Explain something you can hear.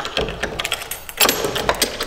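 A key clicks in a lock.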